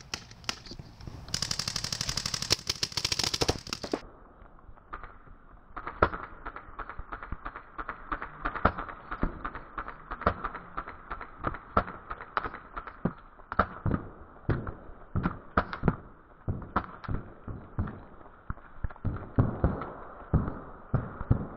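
Paintball markers fire in quick, sharp pops outdoors.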